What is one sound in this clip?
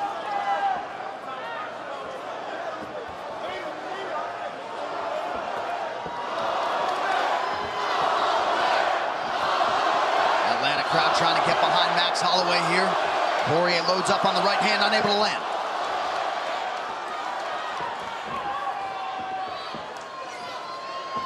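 A large crowd cheers and roars in a big echoing arena, swelling loudly and then settling.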